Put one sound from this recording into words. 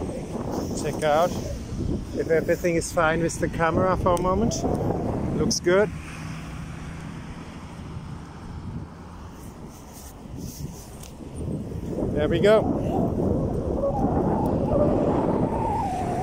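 Wind rushes and rumbles over the microphone outdoors.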